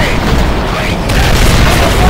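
A mounted machine gun fires.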